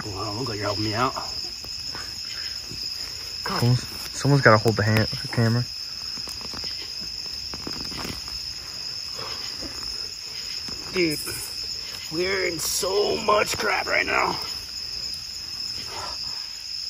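Hands scrape and dig in loose dirt.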